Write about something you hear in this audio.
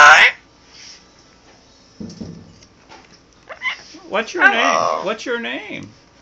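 A parrot squawks and chatters loudly close by.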